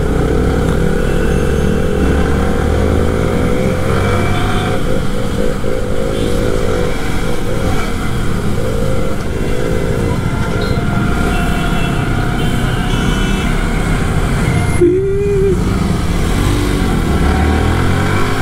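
A motorcycle engine hums and revs steadily up close.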